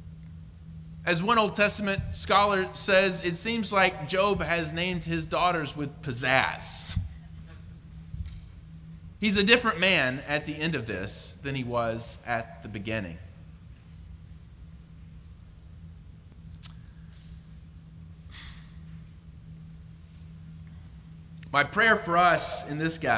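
A young man speaks calmly into a microphone, heard through a loudspeaker in a large room.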